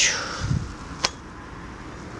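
A metal can clinks.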